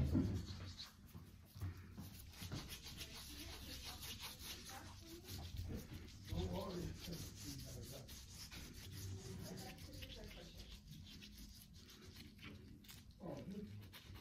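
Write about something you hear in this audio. A damp pad rubs and squeaks softly against wet skin.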